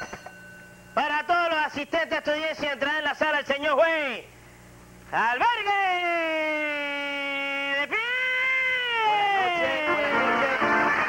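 A man sings loudly and theatrically, close by.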